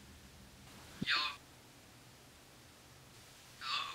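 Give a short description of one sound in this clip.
A young man speaks briefly into a phone.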